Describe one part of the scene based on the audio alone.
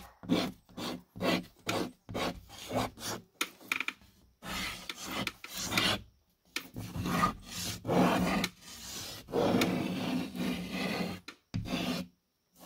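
Chalk scrapes and scratches across a rough wall in short strokes.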